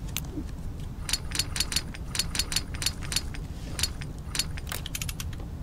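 Small metal parts click and clack in quick runs.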